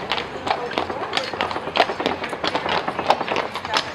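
A horse's hooves clop on cobblestones.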